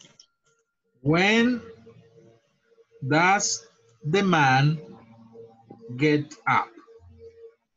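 A man speaks slowly and clearly over an online call.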